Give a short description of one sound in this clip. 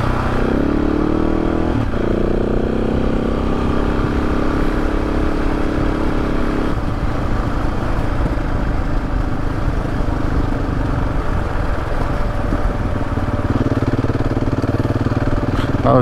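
Tyres crunch and rumble over a gravel track.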